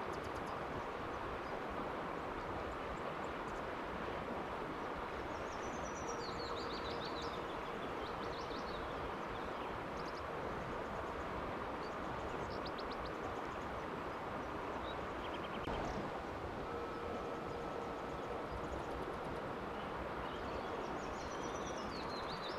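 A river flows steadily over stones outdoors.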